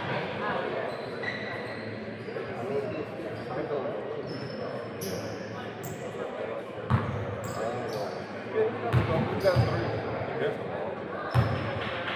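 People chatter in a large echoing gym.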